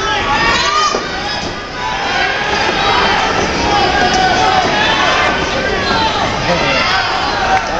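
A crowd cheers and shouts loudly all around.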